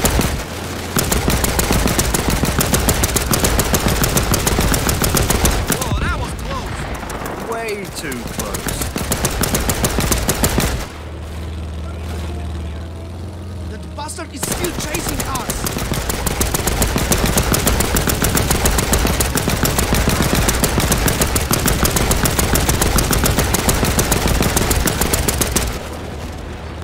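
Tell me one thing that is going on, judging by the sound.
A machine gun fires in rapid bursts close by.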